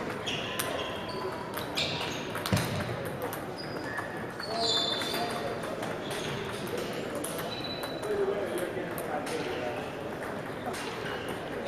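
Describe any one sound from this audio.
A table tennis ball bounces on the table.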